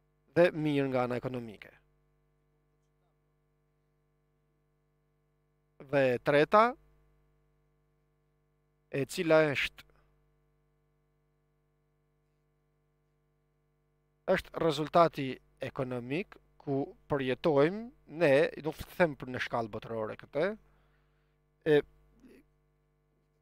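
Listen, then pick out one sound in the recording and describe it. An elderly man speaks with emphasis through a microphone, with long pauses.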